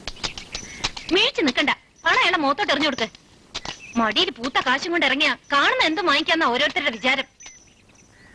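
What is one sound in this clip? A woman speaks loudly and emotionally nearby.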